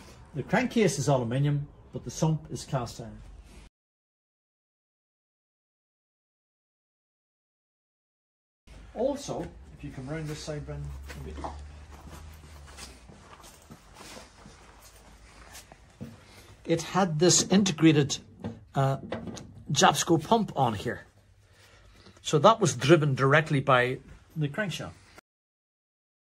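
An elderly man talks calmly nearby.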